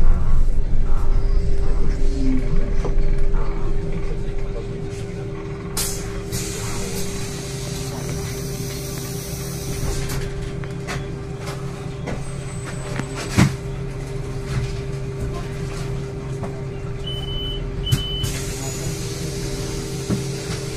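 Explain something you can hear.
A bus engine hums steadily from inside as the bus drives slowly down a street.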